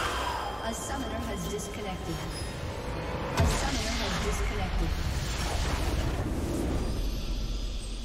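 Game spell effects whoosh and clash in a fight.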